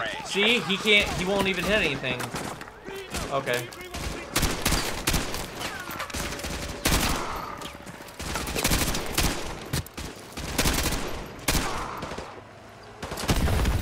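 Rifles fire in rapid bursts nearby.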